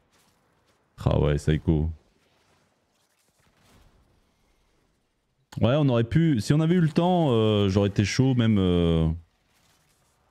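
A man speaks into a close microphone.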